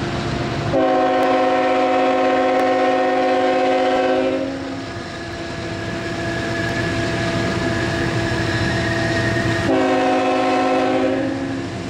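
A train rumbles as it approaches.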